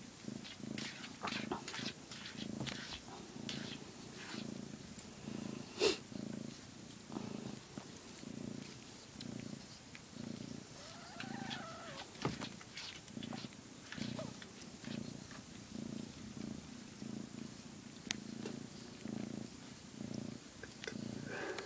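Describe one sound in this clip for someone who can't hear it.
A hand rustles through a cat's fur.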